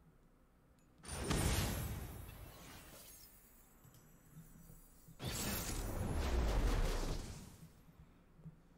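A deep whooshing effect swells and fades away.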